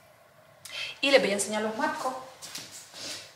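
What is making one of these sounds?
A young woman speaks briefly and calmly close by.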